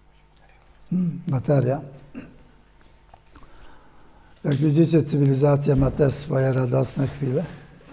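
An elderly man speaks calmly into a microphone, close by.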